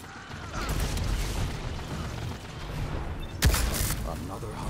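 Gunshots from a video game crack loudly.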